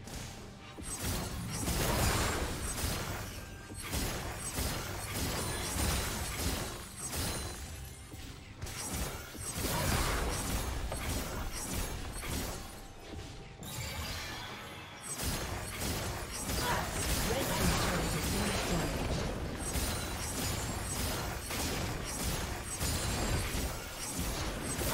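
Video game spell effects whoosh and crackle in a fast battle.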